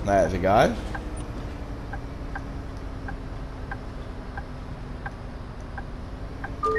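A turn signal ticks at an even pace.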